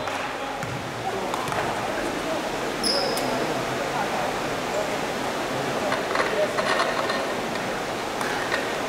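A basketball bounces on the court floor.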